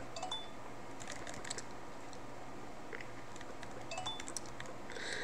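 Short electronic chirps sound as a game character hops.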